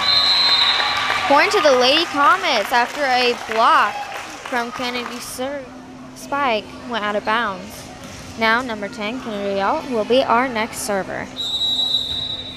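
Young women chant and cheer loudly in an echoing gym.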